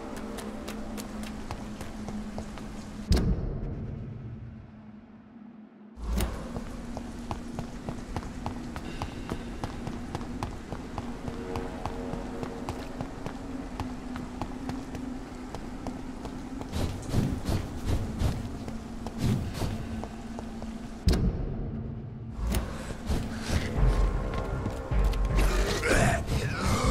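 Footsteps run quickly over wet cobblestones.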